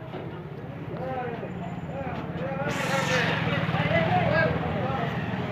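An auto-rickshaw engine idles.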